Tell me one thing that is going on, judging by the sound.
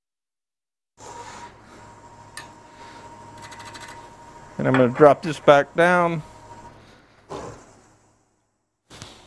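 A wood lathe hums as it spins.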